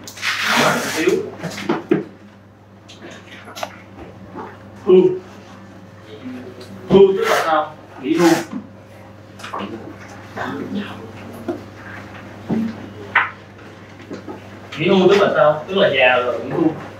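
A man speaks in a calm, lecturing voice.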